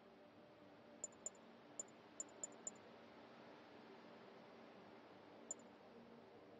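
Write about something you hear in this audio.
Short, faint electronic clicks tick a few times.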